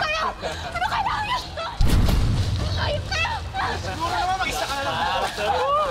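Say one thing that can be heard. Water splashes as people wade through it.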